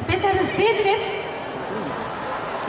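A young woman speaks with animation through a microphone over loudspeakers outdoors.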